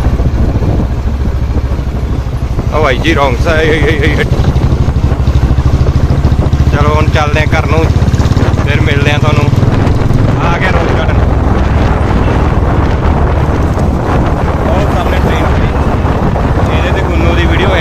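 A motor scooter engine rumbles steadily close by.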